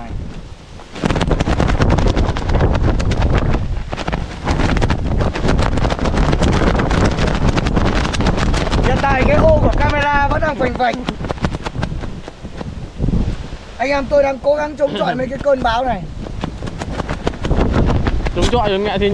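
Strong wind roars and buffets loudly outdoors.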